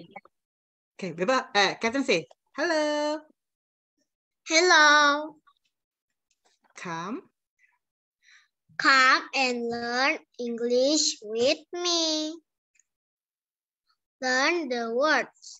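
A woman speaks slowly and clearly over an online call, as if teaching.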